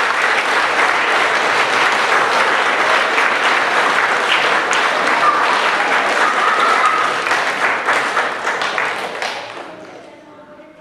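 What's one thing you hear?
An audience applauds loudly in a large hall, then the clapping dies away.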